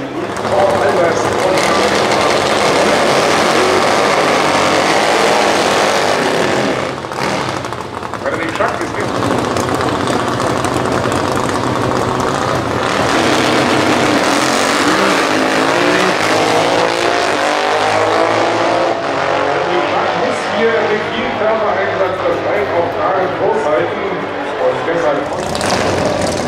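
Drag racing motorcycle engines rev loudly and roar.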